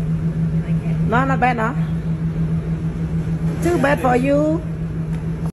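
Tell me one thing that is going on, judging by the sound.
A young woman speaks excitedly close by.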